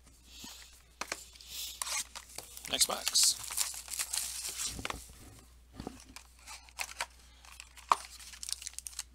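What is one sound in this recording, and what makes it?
A cardboard box is torn open with crackling and ripping.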